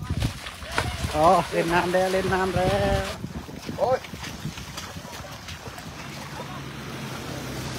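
An elephant splashes as it wades through shallow floodwater.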